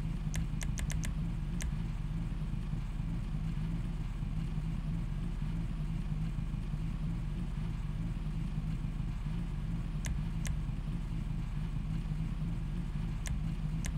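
Short sharp clicks tick now and then.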